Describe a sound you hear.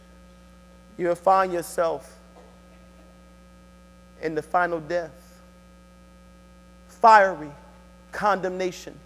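A man speaks into a microphone in short, measured phrases with pauses, in a room with some echo.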